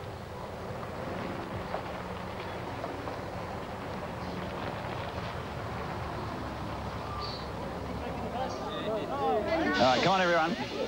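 A bus engine rumbles as the bus drives slowly past.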